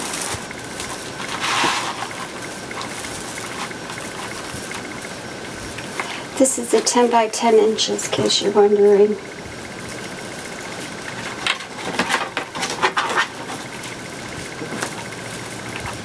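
Plastic mesh rustles and crinkles as it is handled.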